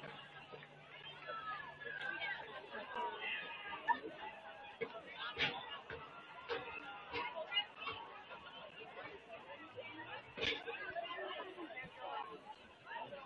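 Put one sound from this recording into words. A crowd of young men chatter and shout outdoors.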